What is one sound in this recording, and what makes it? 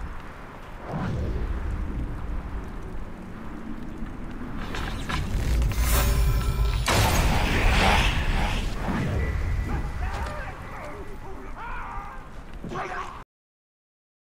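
Game combat sounds whoosh and clash loudly.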